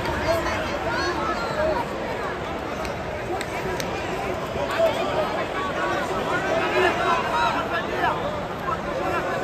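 A large crowd chatters and calls out loudly in an echoing hall.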